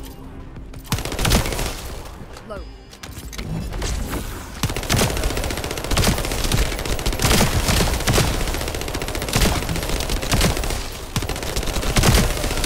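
Gunshots fire in rapid bursts with booming impacts.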